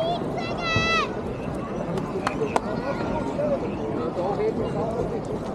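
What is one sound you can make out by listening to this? A crowd chatters outdoors.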